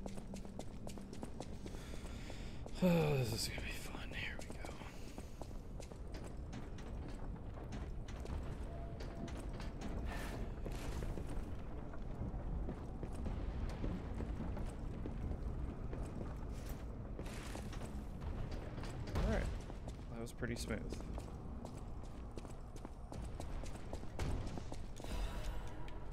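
Footsteps thud steadily on hollow wooden boards.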